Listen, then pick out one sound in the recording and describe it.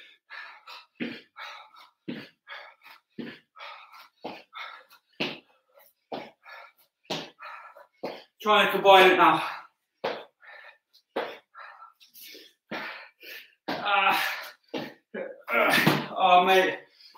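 Feet thud on a mat in a quick rhythm.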